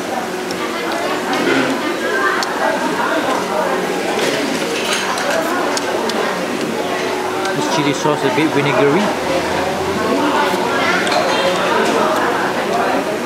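Chopsticks clink against a ceramic bowl.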